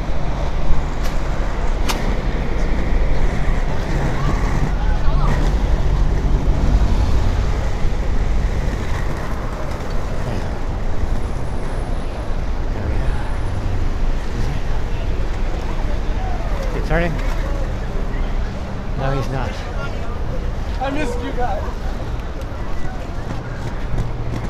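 Inline skate wheels roll and rumble steadily over pavement close by.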